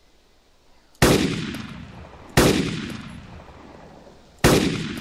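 A rifle fires loud shots that boom and echo away.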